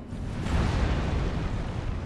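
Heavy rubble crashes and scatters.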